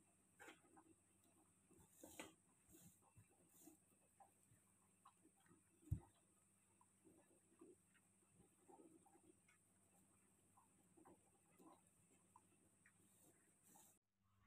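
Hands rustle and crunch through crumbly dough in a bowl.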